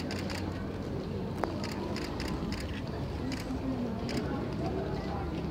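A crowd of people chatters in a large echoing hall.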